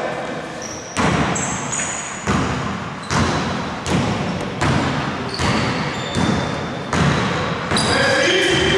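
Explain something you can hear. A basketball bounces rhythmically on a wooden floor in a large echoing hall.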